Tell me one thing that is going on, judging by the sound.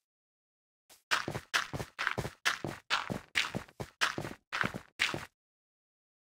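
Blocks of earth are set down with quick, crunchy thuds.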